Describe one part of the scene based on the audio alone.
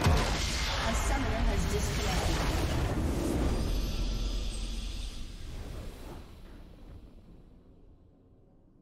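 A huge explosion booms and rumbles, then slowly fades away.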